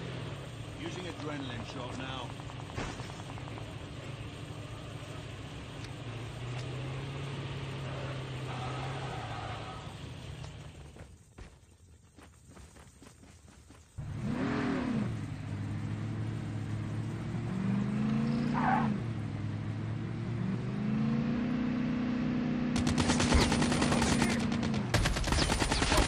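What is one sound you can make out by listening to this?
An off-road vehicle's engine roars, rising and falling in pitch.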